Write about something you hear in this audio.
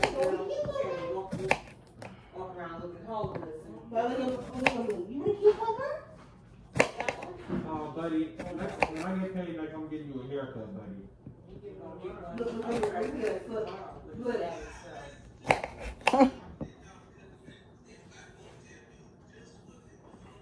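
A knife chops through a cucumber.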